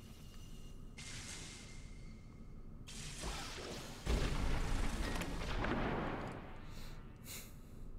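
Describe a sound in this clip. A magic spell shimmers and whooshes.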